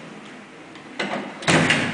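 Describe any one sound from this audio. Lift doors thud together.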